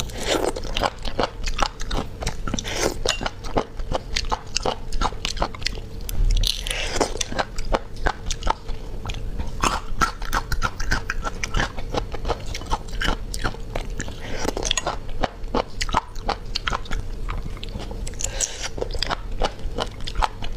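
Snail shells clink against a plate.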